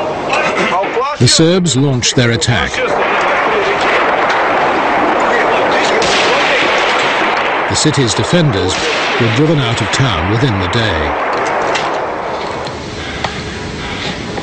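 Gunfire cracks and echoes in bursts.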